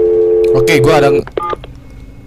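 A telephone rings with a steady electronic tone.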